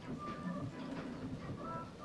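A young woman gulps from a cup.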